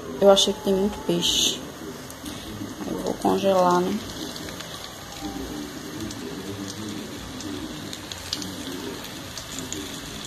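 Fish sizzles gently as it fries in hot oil.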